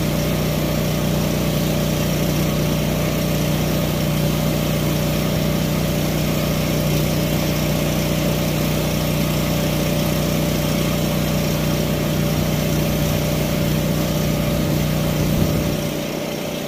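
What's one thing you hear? An air blower hums loudly and steadily, outdoors.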